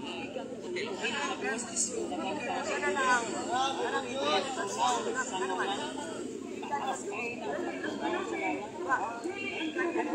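An elderly woman speaks loudly and excitedly close by.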